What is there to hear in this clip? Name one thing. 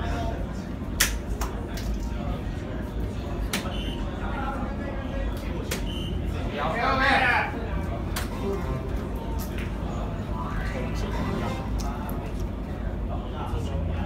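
Soft-tip darts thud into an electronic dartboard.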